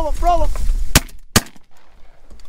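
A shotgun fires two loud shots close by.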